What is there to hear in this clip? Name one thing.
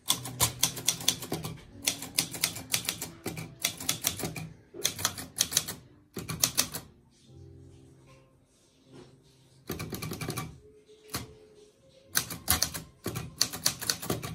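Typewriter keys clack in quick bursts.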